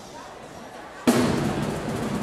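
A drum booms once sharply.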